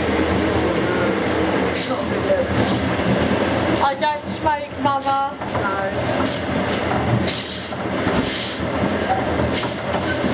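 A woman talks close by, with animation.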